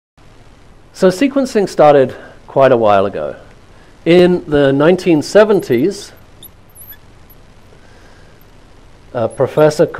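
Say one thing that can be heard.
A middle-aged man speaks calmly and clearly into a clip-on microphone, lecturing.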